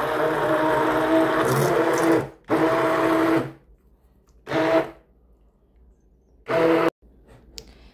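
A hand blender whirs loudly in short bursts.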